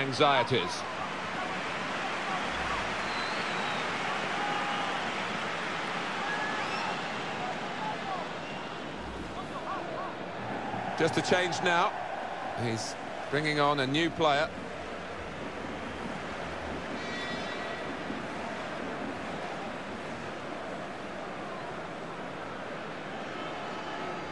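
A stadium crowd roars and cheers steadily throughout.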